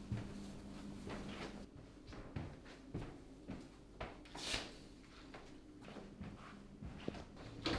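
A young man speaks calmly nearby.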